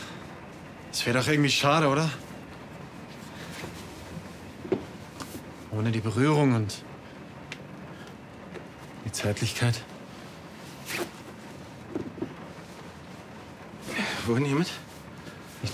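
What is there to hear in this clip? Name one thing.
A man speaks playfully in a sing-song voice close by.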